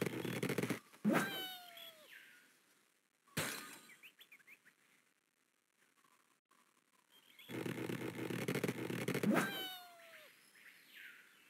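A cartoon bird squawks with a falling cry as it flies.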